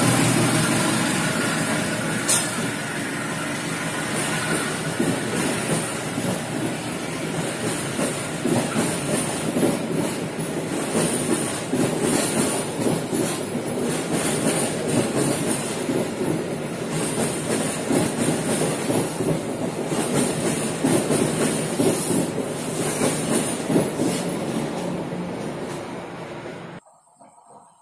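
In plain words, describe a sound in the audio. A passenger train rumbles past close by on the rails.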